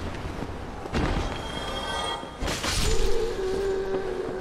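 A magic spell bursts with a loud rushing whoosh.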